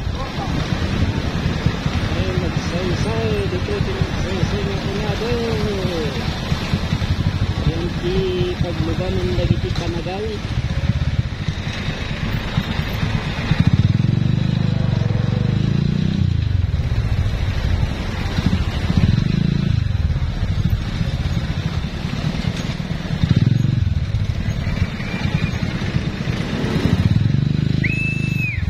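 A motorcycle engine rumbles steadily close by, revving up and down.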